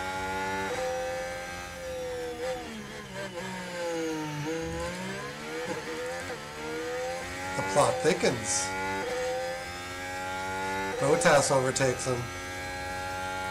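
A racing car engine whines steadily, rising and falling in pitch as it shifts gears.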